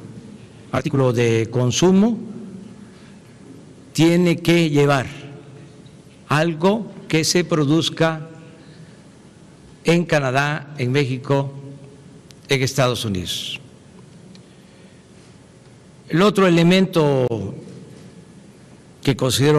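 An elderly man speaks calmly into a microphone in short bursts with pauses.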